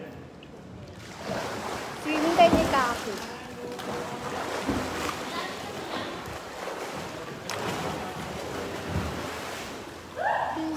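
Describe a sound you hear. Water splashes and sloshes in a pool.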